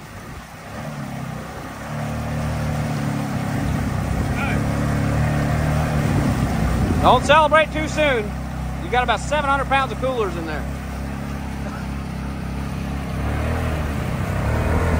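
An engine revs and strains as a vehicle sits stuck in mud.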